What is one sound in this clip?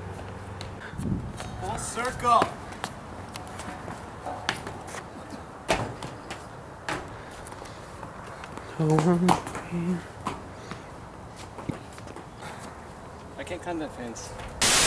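Young men talk and laugh outdoors.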